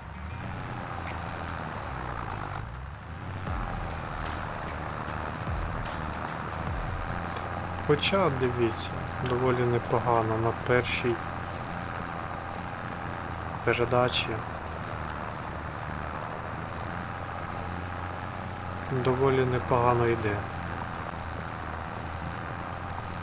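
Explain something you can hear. A tractor engine rumbles steadily.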